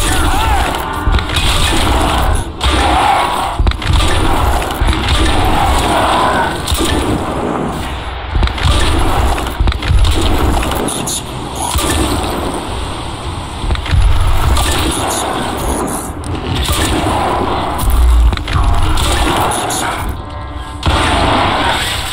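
A sniper rifle fires sharp shots again and again.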